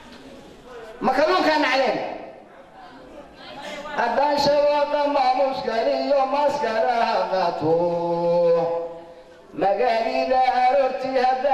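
An elderly man recites in a chanting voice through a microphone.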